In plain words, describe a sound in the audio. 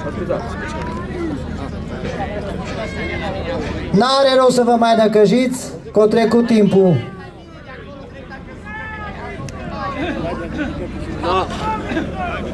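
People talk in the background outdoors.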